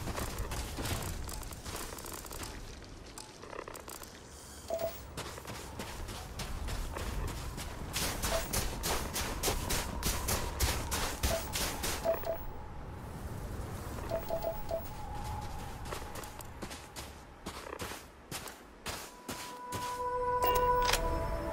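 Footsteps crunch steadily on dry, sandy ground.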